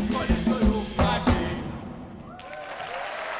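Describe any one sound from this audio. Drums and cymbals strike a loud final hit and ring out.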